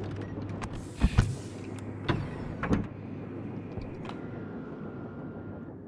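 A heavy mechanical door slides with a low rumble and clunks.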